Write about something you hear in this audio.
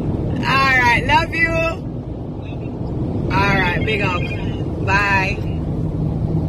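A young woman sings in a high, bright voice close by.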